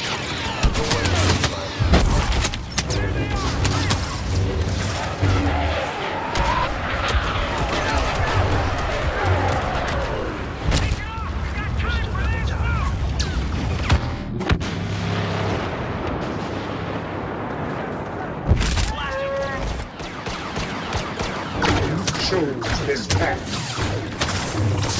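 Blaster shots zap and crack in quick bursts.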